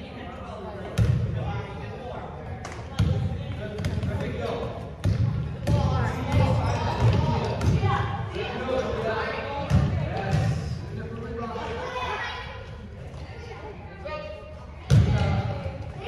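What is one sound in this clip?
A basketball bounces on a hard court in a large echoing hall.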